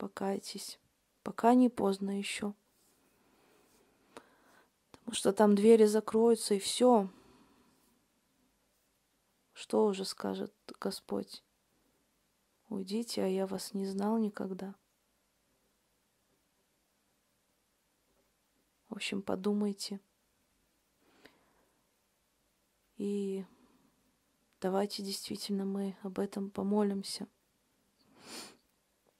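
A woman speaks calmly and close to a microphone, in short phrases with pauses.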